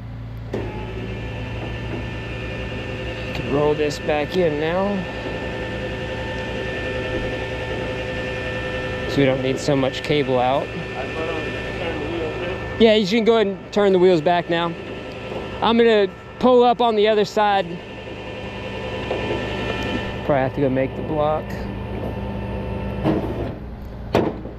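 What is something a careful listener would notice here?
A truck engine idles with a steady low hum.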